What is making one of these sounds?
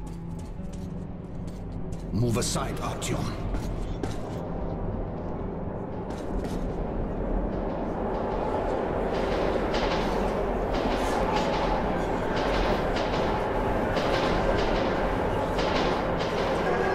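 Footsteps crunch steadily on gravel in an echoing tunnel.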